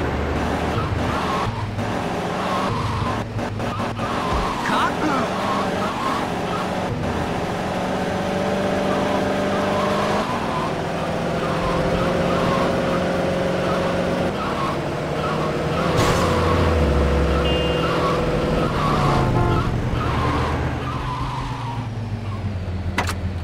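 A car engine drones and revs steadily.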